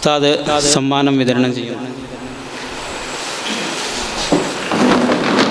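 A man chants in a drawn-out voice into a microphone, heard through a loudspeaker in an echoing room.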